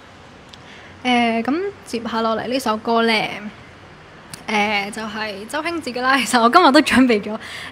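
A young woman sings clearly into a microphone.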